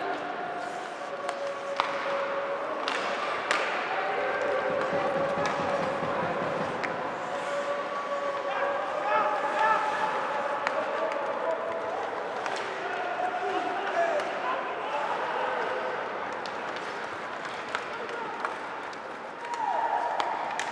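A crowd chants and cheers in an echoing arena.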